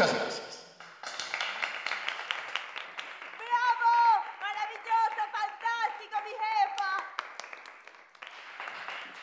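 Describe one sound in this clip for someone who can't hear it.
A small crowd claps.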